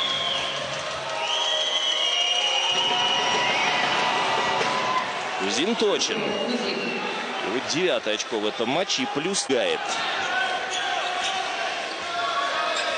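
A large crowd cheers and whistles in an echoing arena.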